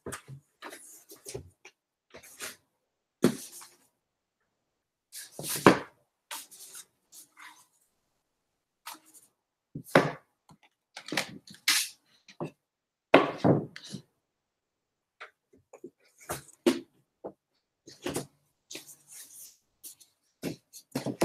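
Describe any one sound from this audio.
Objects rustle and knock close by in short bursts as someone rummages through things.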